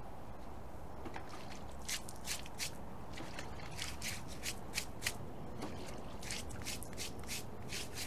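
A stiff brush scrubs a horse's hoof with quick strokes.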